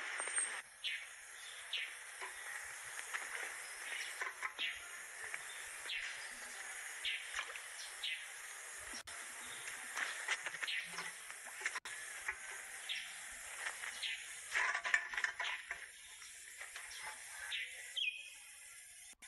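Metal cans clink and rattle together with each step.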